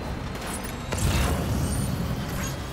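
A vehicle thumps down heavily onto the ground.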